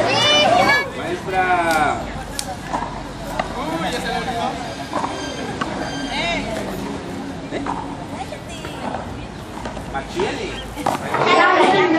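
Young people chatter in a crowd nearby.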